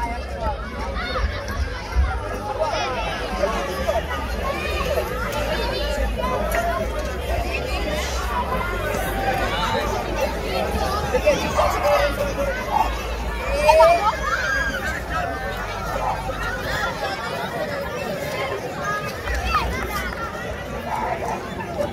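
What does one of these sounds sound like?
Children shout and cheer excitedly.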